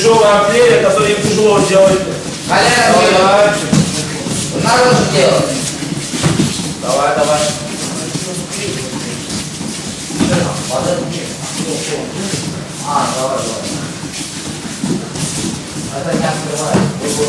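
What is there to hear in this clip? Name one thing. Children thump and roll on soft mats.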